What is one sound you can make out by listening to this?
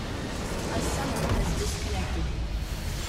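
A huge structure explodes with a deep boom.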